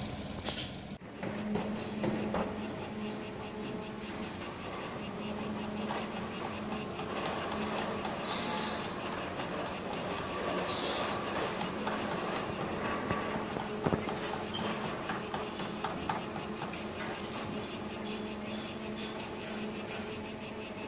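A concrete pump's engine drones steadily with a fast throbbing beat.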